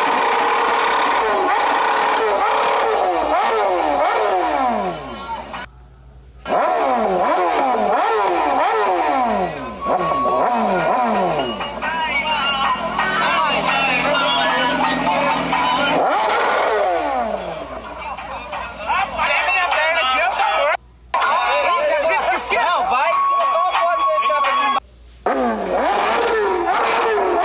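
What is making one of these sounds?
Young men shout and cheer close by.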